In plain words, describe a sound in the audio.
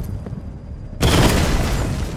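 A bright blast explodes with a loud roar.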